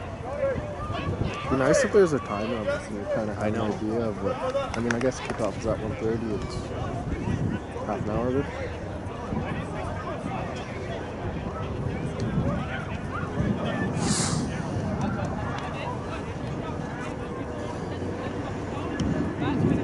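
Wind blows steadily across an open field.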